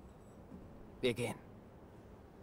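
A man speaks briefly in a low voice.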